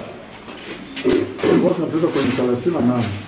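A man speaks loudly to a group.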